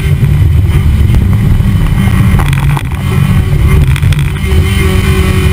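A race car engine roars loudly at high revs close by.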